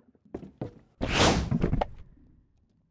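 A skateboard grinds noisily along a ledge.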